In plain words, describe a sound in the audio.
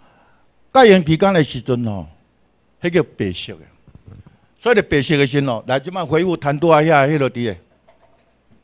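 A middle-aged man speaks with animation through a microphone and loudspeaker.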